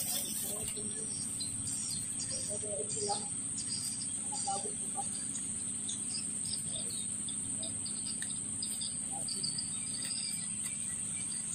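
A small bat squeaks.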